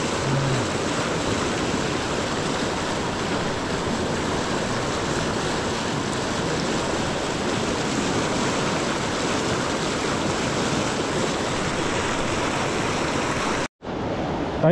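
A fast river rushes and splashes over rocks close by.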